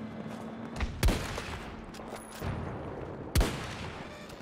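A sniper rifle fires single sharp shots.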